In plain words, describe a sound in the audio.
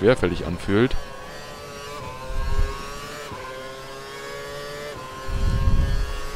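A racing car engine whines at high revs and shifts up through the gears.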